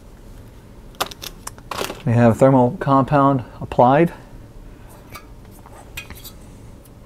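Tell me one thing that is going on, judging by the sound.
Small metal parts click and clatter as they are handled.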